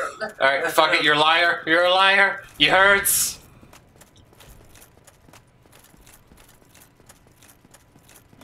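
Armoured footsteps run across stone.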